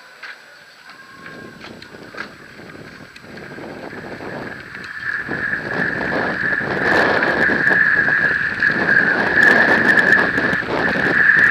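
Bike tyres crunch and rattle over loose gravel, growing louder as the ride speeds up.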